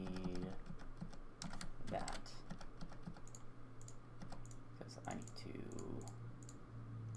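Soft menu clicks tick repeatedly.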